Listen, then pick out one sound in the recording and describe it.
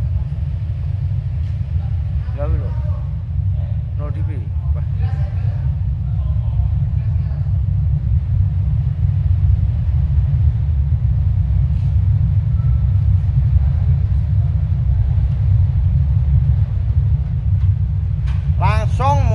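Audio equipment gives off a steady low hum.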